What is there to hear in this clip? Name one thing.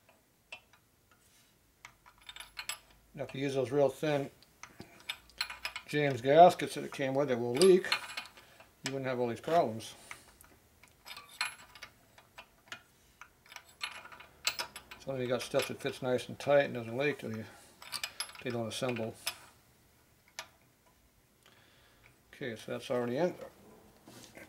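Small metal parts click and tap against an engine.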